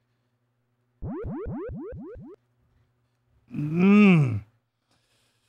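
A short burst of electronic game sound effects plays.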